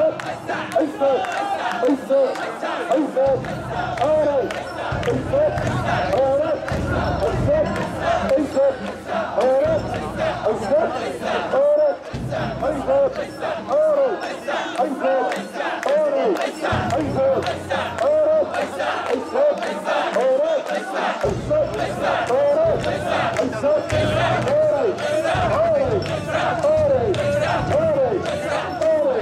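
A crowd of men and women chant loudly in rhythm, close by.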